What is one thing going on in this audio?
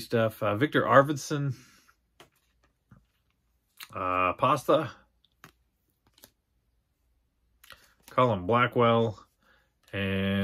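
Trading cards rustle and slide in a young man's hands.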